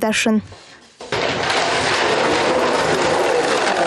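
A plastic toy truck rolls across a wooden floor.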